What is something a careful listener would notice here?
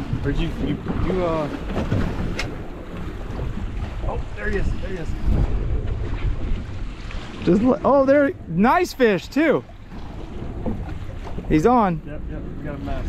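A man talks nearby with excitement.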